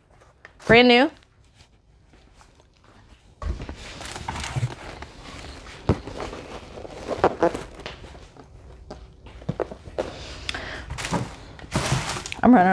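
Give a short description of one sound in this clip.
Tissue paper rustles and crinkles.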